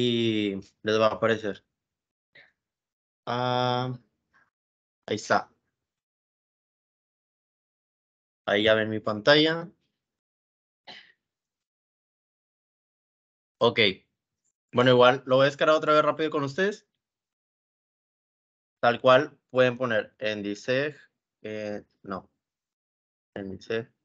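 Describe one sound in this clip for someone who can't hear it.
A young man talks calmly into a microphone, in short bursts with pauses.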